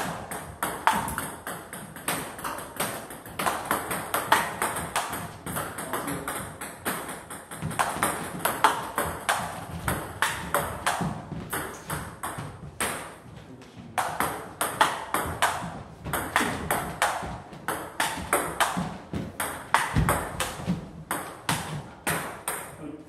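A ping-pong ball clicks quickly back and forth off paddles and a table.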